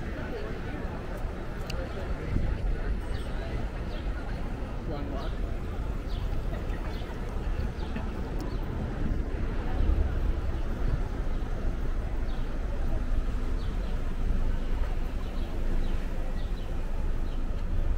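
Footsteps tap on a pavement outdoors.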